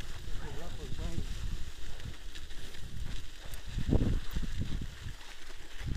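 Bicycle tyres crunch and roll over packed snow.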